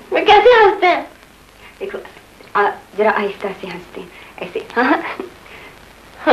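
Another young woman answers calmly close by.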